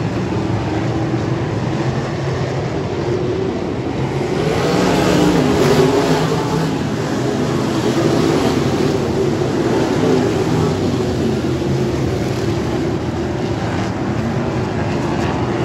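A pack of open-wheel midget race cars roars around a dirt oval.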